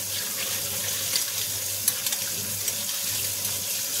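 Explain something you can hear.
A metal spoon clinks against glass.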